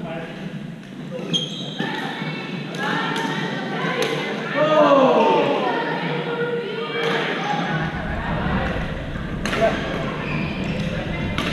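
Men call out and talk across the echoing hall.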